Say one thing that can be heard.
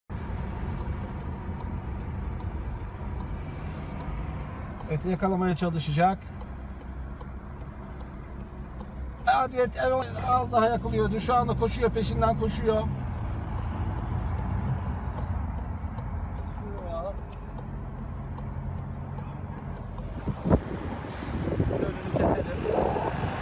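A car drives along a wet road with a steady low rumble of tyres and engine.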